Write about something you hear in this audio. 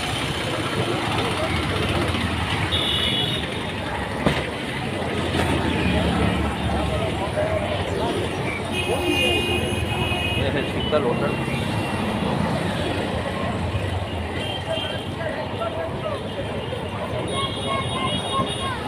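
Motor scooters and auto rickshaws hum through busy street traffic.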